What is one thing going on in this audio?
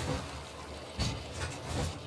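A flamethrower roars nearby.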